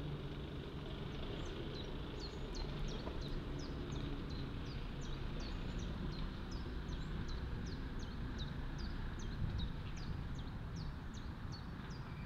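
A small bird chirps in quick, sharp, repeated calls close by.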